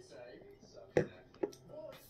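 A glass clinks on a hard surface.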